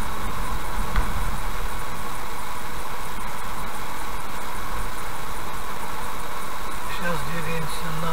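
Tyres roll steadily over an asphalt road from inside a moving car.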